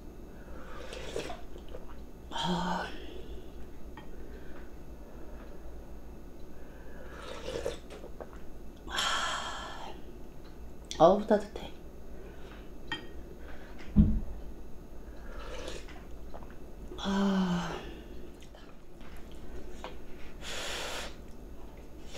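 A young woman slurps soup noisily from a spoon, close by.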